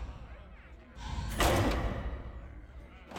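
A game menu plays a loud whooshing effect as a panel slides into place.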